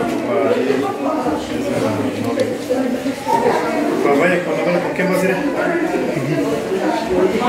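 Two women talk with each other nearby.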